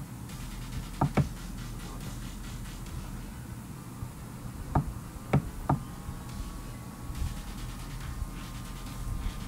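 A young man speaks softly close to a microphone.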